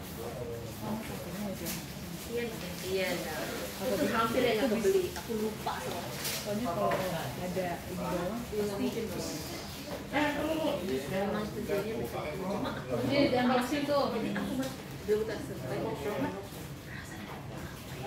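Plastic food boxes rustle and clatter as they are packed.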